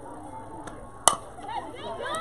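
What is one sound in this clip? A bat strikes a ball with a sharp crack.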